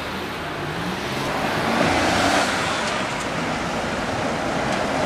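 A tram rumbles past on rails.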